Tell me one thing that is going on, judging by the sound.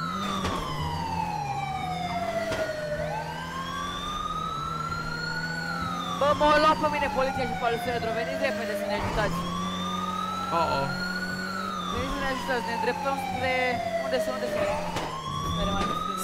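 A car engine revs up and down repeatedly as gears shift.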